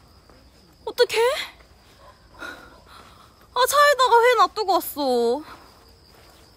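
A young woman speaks close by with animated, exclaiming outbursts.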